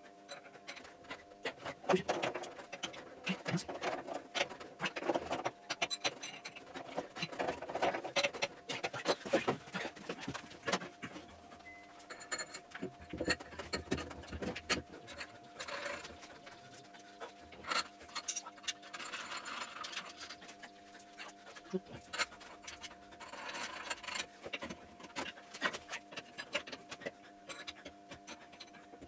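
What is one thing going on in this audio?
Metal tools clink and knock against metal parts.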